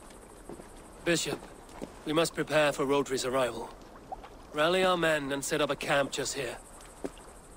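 A man speaks in a deep, calm voice close by.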